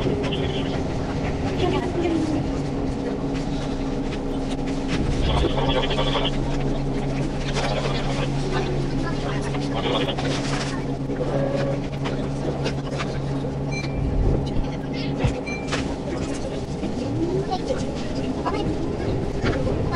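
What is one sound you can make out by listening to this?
A train hums and rumbles steadily along the tracks.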